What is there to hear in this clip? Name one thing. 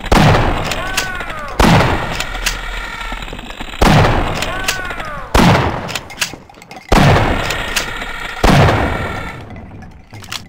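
A shotgun fires a series of loud blasts.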